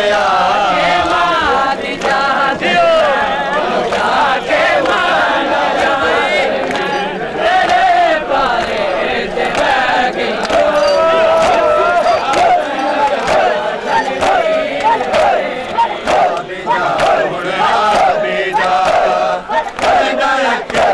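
A crowd of men chant loudly together outdoors.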